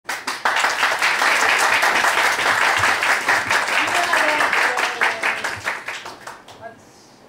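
An audience claps and cheers loudly in a room.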